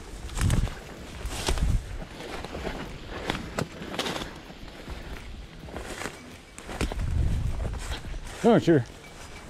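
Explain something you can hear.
Footsteps crunch through dry leaves close by.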